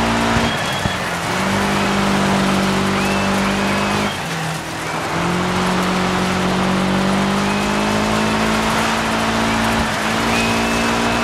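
Tyres skid and crunch over loose dirt.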